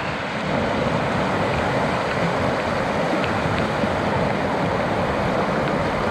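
Water splashes as a person wades in a stream.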